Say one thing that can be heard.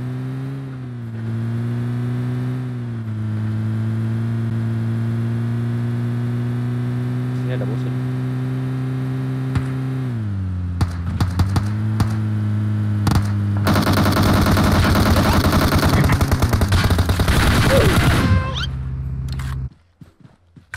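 A car engine hums steadily, rising and falling in pitch as it drives.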